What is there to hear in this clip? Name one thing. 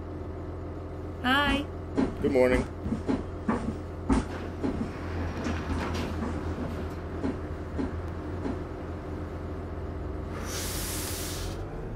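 A diesel articulated city bus engine hums, then pulls away.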